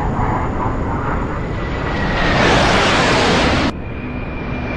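A jet whooshes past close by.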